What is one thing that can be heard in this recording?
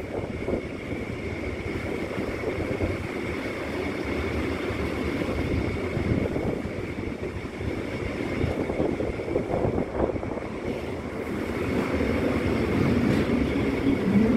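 Wind gusts loudly and steadily outdoors.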